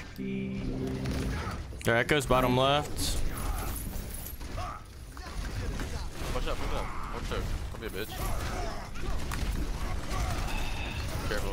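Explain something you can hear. Gunfire and blasts rattle from a video game.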